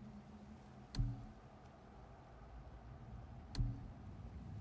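Menu clicks sound once in a while.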